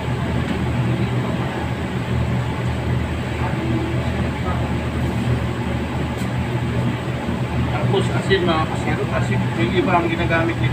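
Gas burners roar steadily.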